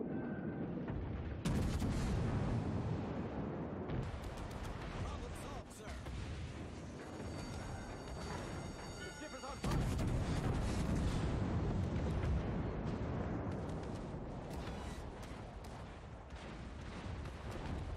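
Shells explode in the water with heavy splashes.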